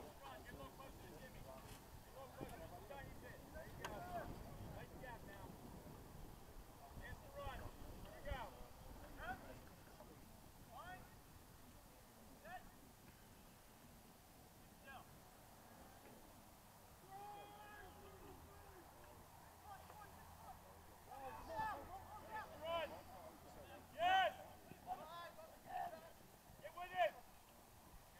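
Young women shout calls to each other outdoors, some far off and some nearer.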